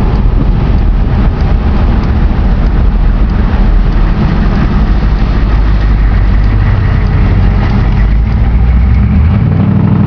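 A car engine rumbles loudly and steadily from inside the car.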